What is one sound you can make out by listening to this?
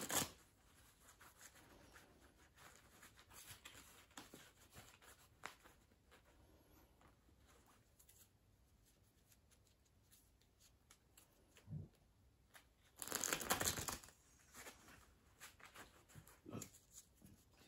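Playing cards rustle and tap softly as hands handle them.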